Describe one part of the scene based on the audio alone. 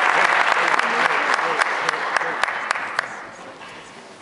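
An audience applauds loudly, then the clapping fades.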